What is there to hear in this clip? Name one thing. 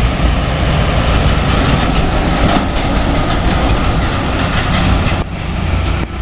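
A diesel truck engine roars close by as it drives past.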